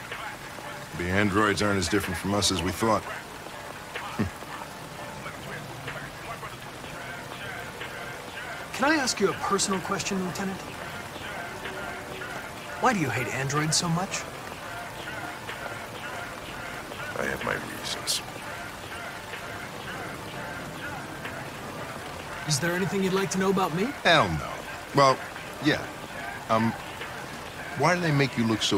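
An older man speaks calmly and quietly.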